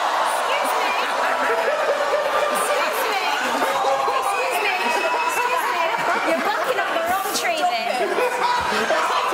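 A woman laughs and talks with animation.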